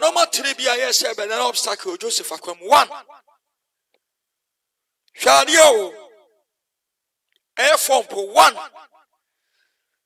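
A man speaks with animation into a microphone over an online call, in short bursts with pauses.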